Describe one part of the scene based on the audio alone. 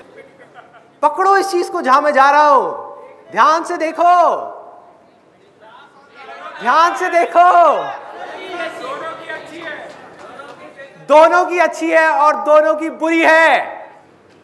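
A young man speaks loudly and with animation through a microphone in an echoing hall.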